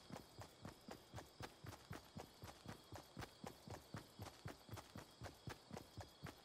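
Footsteps run quickly and steadily over grass.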